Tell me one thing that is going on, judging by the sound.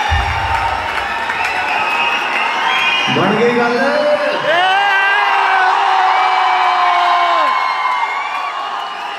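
A large crowd cheers loudly in a big echoing hall.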